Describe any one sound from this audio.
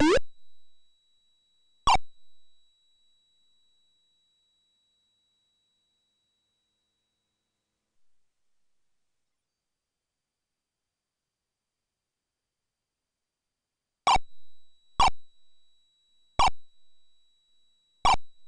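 A short electronic game sound effect chirps now and then.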